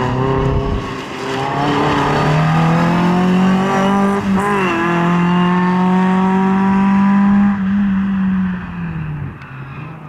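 A small car's engine revs hard, rising and falling as it changes gear.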